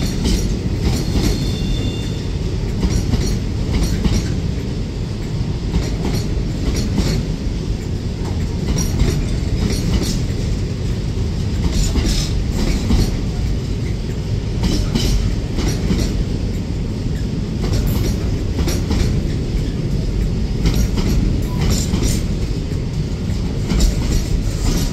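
A long freight train rumbles steadily past close by.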